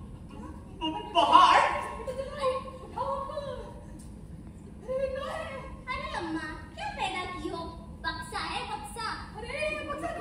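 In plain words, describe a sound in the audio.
A woman speaks with feeling on a stage in a large hall.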